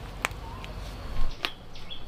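Mushroom clusters snap softly as a hand pulls them from plastic bags.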